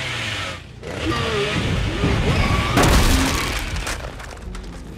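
A chainsaw revs loudly.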